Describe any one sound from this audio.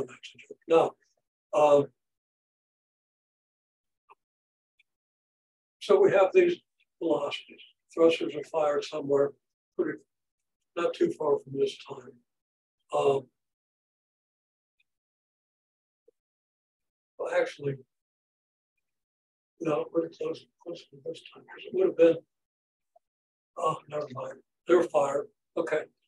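An elderly man lectures calmly, speaking in short bursts with pauses.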